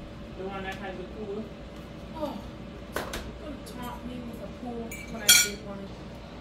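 Dishes clink in a sink.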